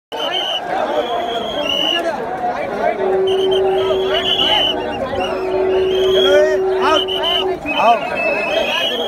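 A dense crowd of men and women talks and shouts all around, close by, outdoors.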